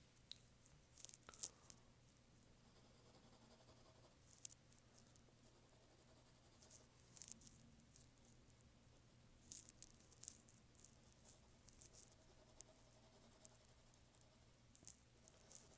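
A pencil scratches and taps lightly on paper.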